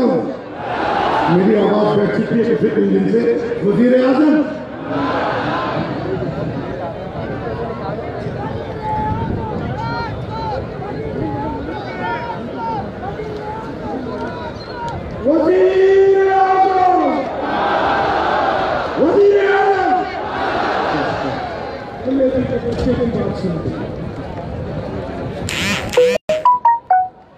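A huge crowd chants and cheers loudly outdoors.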